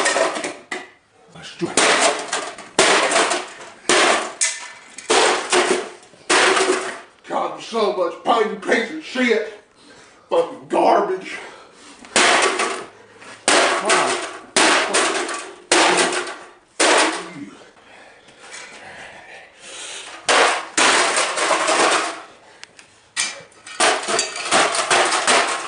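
A man smashes electronics with loud, repeated crashing blows.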